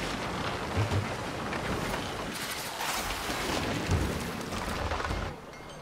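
Waves wash and splash around a sailing ship.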